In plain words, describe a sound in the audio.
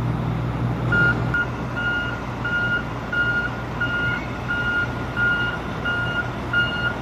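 A military truck engine idles with a low rumble.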